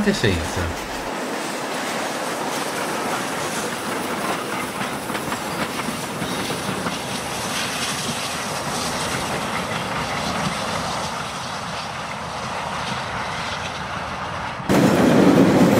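A train rumbles past and fades into the distance.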